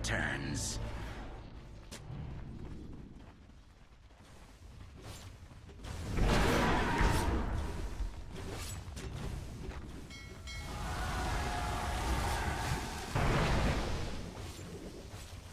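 Magic spells burst and crackle during a fight.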